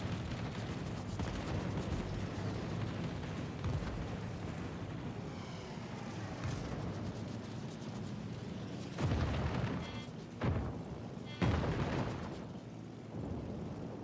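Anti-aircraft guns fire in loud bursts.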